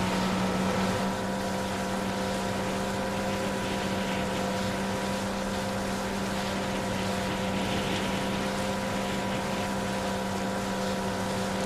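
A jet ski engine hums steadily as it skims over calm water.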